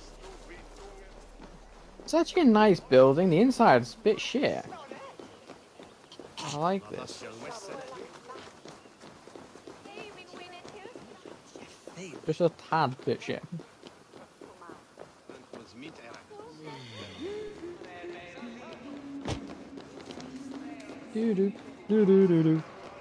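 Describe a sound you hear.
Quick footsteps run over stone and gravel.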